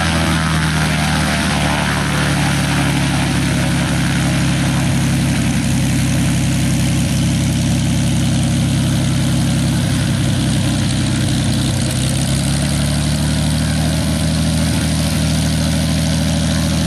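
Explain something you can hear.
A small propeller plane's engine idles with a steady, loud drone close by.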